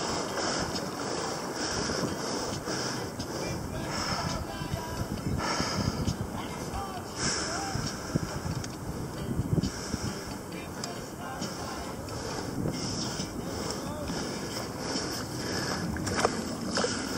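Water splashes and laps against a small boat.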